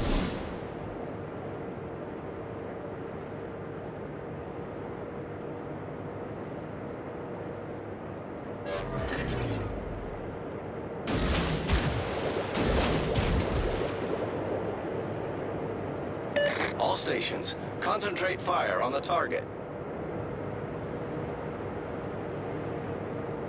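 A ship's engine rumbles steadily over rushing water.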